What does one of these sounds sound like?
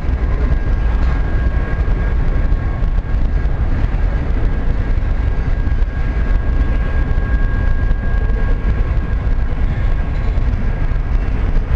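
Metal wheels squeal faintly on the track.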